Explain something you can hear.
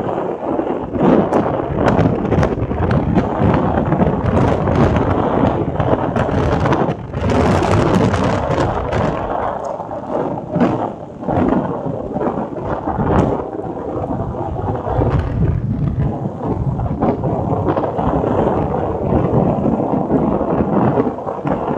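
A vehicle engine hums steadily while riding along the road.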